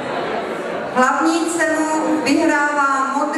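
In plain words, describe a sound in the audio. A young woman speaks into a microphone, heard through loudspeakers in a large echoing hall.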